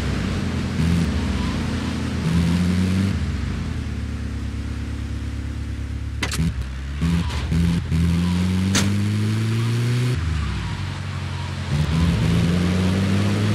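A van engine hums and revs as it drives, rising and falling in pitch.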